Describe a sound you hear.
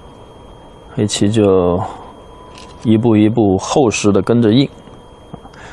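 A man speaks calmly into a microphone, explaining.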